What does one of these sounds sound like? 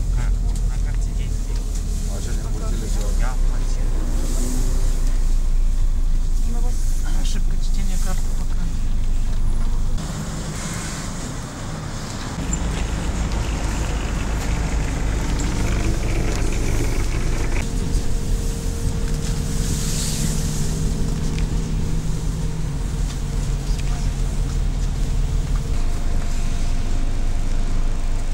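Men and women talk over one another nearby.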